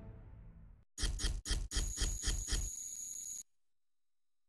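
A game's score tally ticks rapidly as it counts up.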